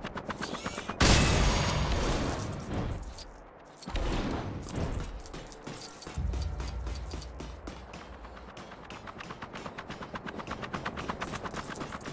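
Small coins jingle and chime as they are picked up.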